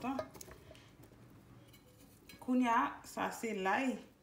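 Pieces of chopped vegetable rustle and tap in a metal pan.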